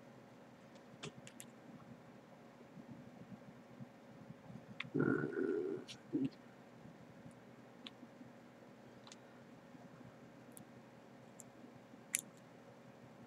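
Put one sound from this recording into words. Metal probe tips tap and click against battery contacts.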